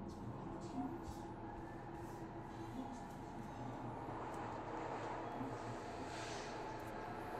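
A train rumbles steadily along its track.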